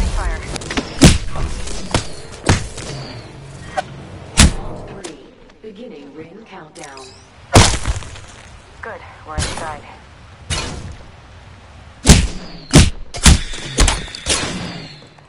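A pistol fires sharp single shots.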